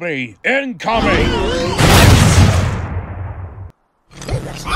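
A blaster fires with a loud, rushing whoosh.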